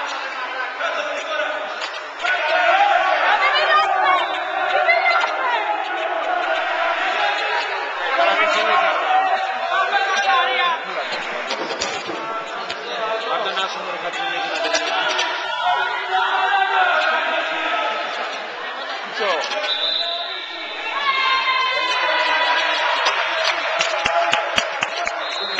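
A volleyball is struck with dull slaps.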